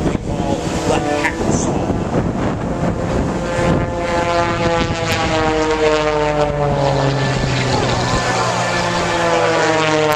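Jet planes roar overhead, their pitch slowly falling as they pass.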